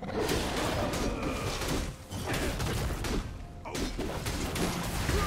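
Magical spell effects whoosh and crackle in a fight.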